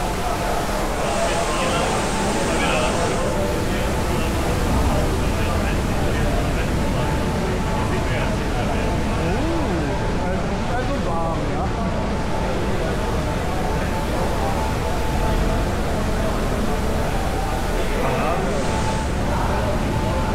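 A crowd of people murmur and talk in a large echoing tunnel.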